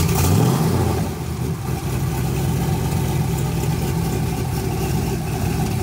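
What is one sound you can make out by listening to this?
A truck engine idles with a deep, steady rumble.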